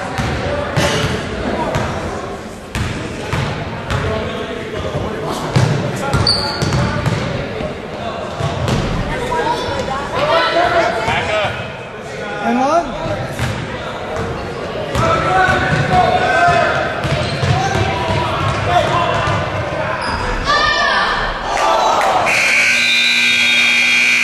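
A crowd of spectators talks and cheers.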